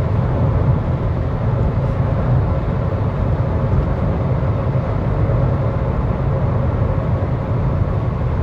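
A car drives steadily along a paved road, its tyres and engine rumbling from inside.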